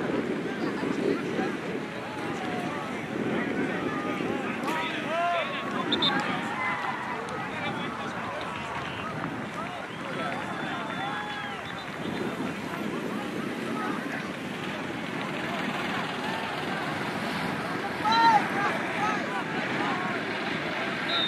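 A crowd of spectators chatters and cheers outdoors at a distance.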